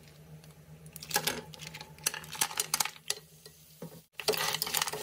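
Shellfish clatter as they tumble into a pan.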